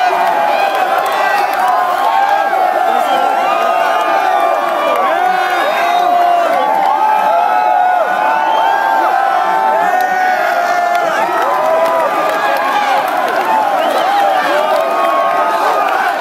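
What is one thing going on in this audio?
A large crowd cheers and shouts loudly all around, close by.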